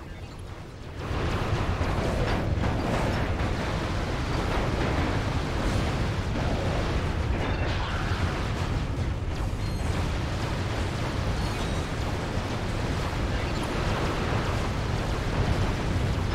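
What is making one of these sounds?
Video game laser guns fire and explosions rumble.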